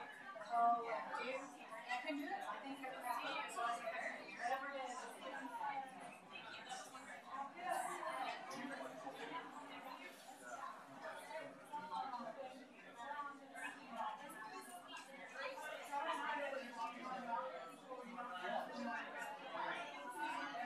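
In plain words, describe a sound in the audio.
Several adults chat at once in a crowded room, their voices overlapping.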